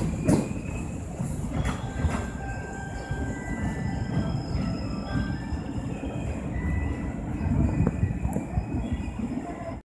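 A train rumbles along the tracks and slowly moves away.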